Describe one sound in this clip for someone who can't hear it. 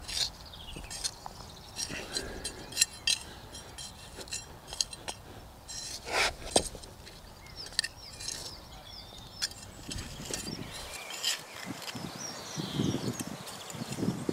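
A trowel scrapes and digs into soil.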